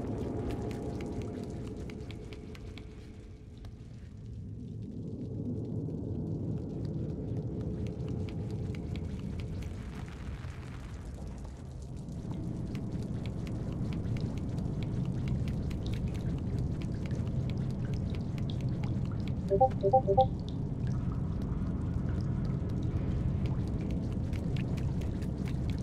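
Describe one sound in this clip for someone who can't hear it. Small footsteps patter quickly on a hard floor.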